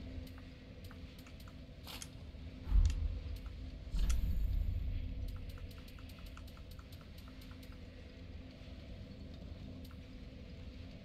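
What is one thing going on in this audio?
Short soft clicks tick in quick succession.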